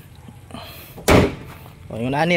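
A car hood slams shut with a heavy thud.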